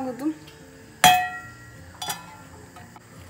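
A metal pan clanks against a stove grate.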